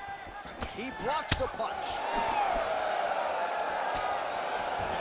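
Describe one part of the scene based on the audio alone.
A punch lands with a sharp thud.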